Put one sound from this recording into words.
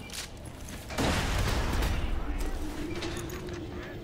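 A loud explosion bursts with a roaring blast of fire.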